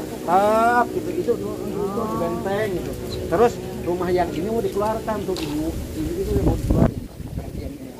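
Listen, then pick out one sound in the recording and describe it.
A group of men and women chant together in a melodic, prayer-like way.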